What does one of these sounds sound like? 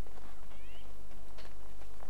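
Footsteps scuff on stone paving.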